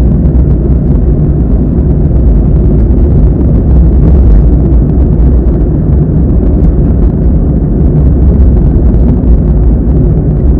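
A car drives along a road with a steady low rumble of tyres and engine.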